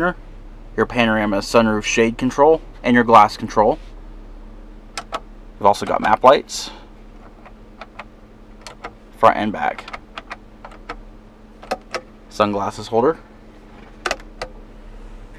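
Plastic buttons click as they are pressed.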